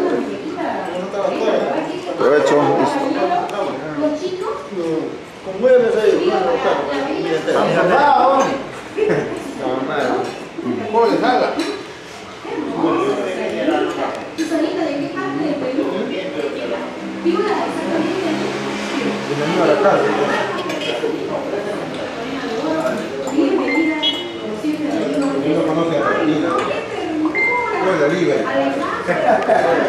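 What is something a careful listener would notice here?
Forks and knives clink on plates.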